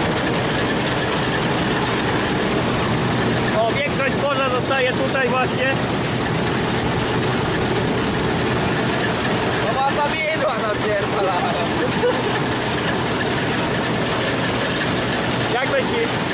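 A combine harvester's engine roars steadily close by.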